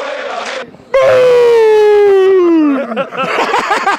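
A man shouts loudly into a microphone close by, his voice falling in pitch.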